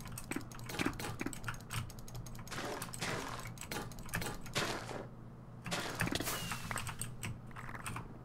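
Sharp thuds of an axe striking a creature come in quick bursts.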